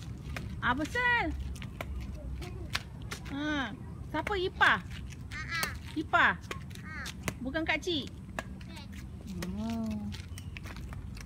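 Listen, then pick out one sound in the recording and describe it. A young girl laughs and talks playfully close by.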